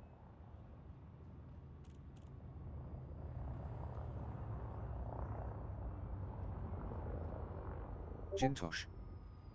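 A spacecraft engine hums low and steadily, slowly growing louder.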